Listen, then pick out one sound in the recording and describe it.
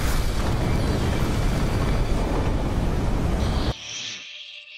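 A large explosion roars and rumbles.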